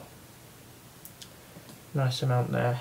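A small screwdriver turns screws with faint clicks.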